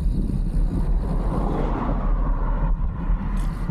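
A car passes by, rising and fading.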